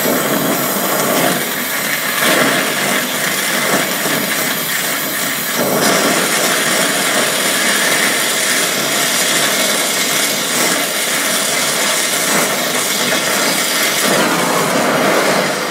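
A gas torch flame roars and hisses steadily.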